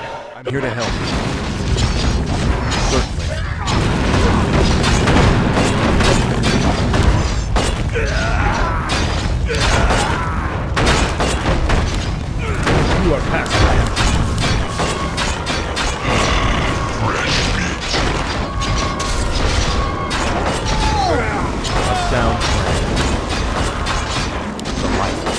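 Magic spells crackle and burst in a fantasy battle.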